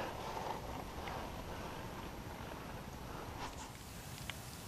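Water laps and splashes gently against a small boat.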